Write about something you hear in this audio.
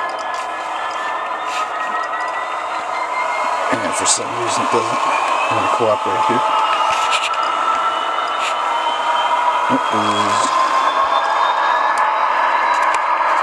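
A small electric model train motor whirs steadily, its pitch slowly rising and falling.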